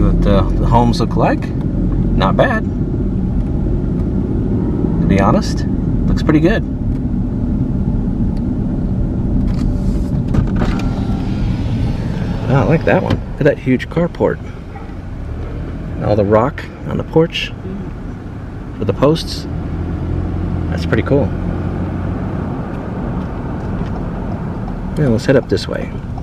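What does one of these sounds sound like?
A car engine hums steadily while driving on a paved road.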